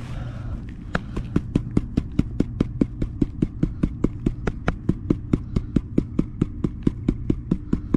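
Water sloshes rhythmically in a shallow pan.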